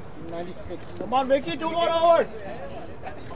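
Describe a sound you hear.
A man shouts loudly outdoors nearby.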